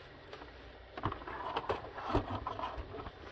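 A plastic console knocks and clatters as it is set down on a desk.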